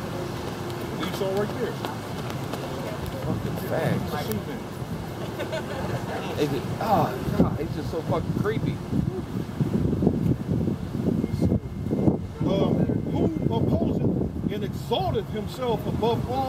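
A man preaches loudly outdoors, reading out with animation.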